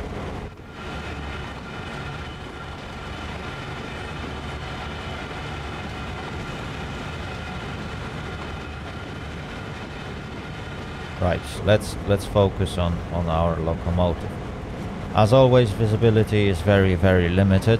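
A diesel locomotive engine hums steadily.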